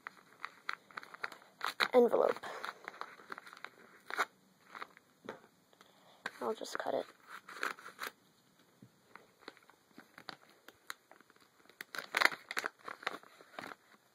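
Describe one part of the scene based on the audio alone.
Paper crinkles and rustles as it is folded by hand.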